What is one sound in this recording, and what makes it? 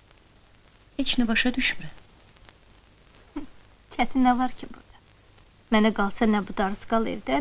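A woman speaks quietly and tensely, close by.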